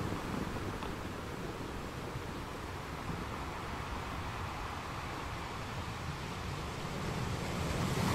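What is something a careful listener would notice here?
Foamy water washes and hisses between rocks.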